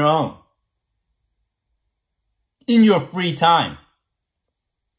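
A young man speaks calmly and close up, in short bursts.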